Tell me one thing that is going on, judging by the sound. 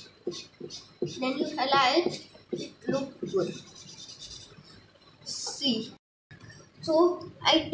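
A young girl speaks close to the microphone.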